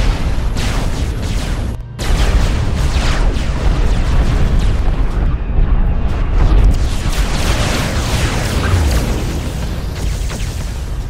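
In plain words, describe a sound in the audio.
Laser weapons fire and crackle in a fierce battle.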